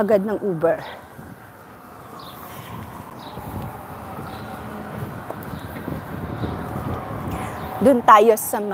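Street traffic rumbles steadily in the distance.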